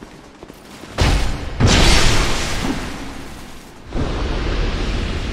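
Heavy blows crash as armoured fighters clash.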